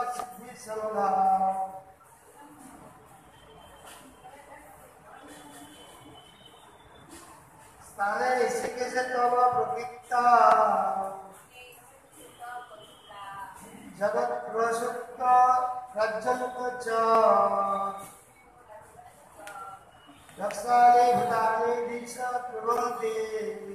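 Men and women sing together nearby in loud bursts, with short pauses between.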